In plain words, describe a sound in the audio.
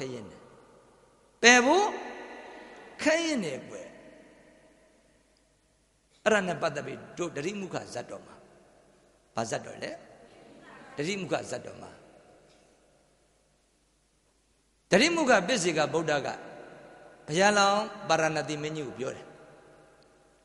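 A middle-aged man speaks with feeling into a microphone, in bursts separated by pauses, with a ringing echo after each phrase.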